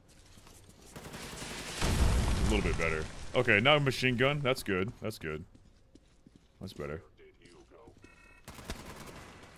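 Gunfire blasts loudly in a video game.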